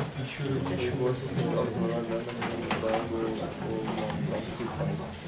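A man speaks steadily through a microphone in a large echoing room.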